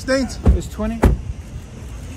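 A car door slams shut.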